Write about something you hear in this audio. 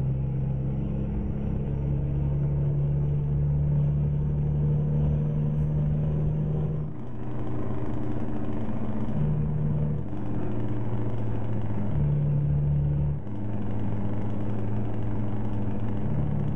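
A truck engine hums steadily, rising and falling as gears change.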